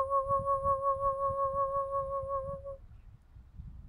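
A young woman hums a long, steady, wavering note close by.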